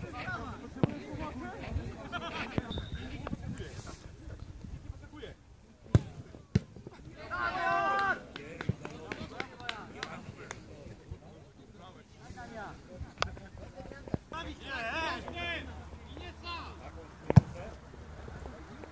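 Football players shout to each other on an open outdoor field.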